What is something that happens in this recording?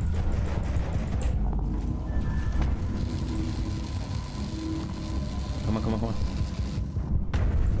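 A powered tool crackles and hisses against metal.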